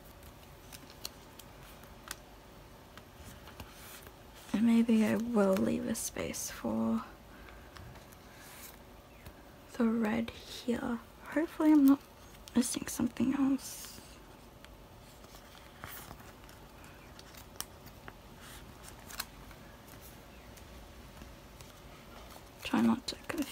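Plastic sleeves rustle and crinkle as cards are handled.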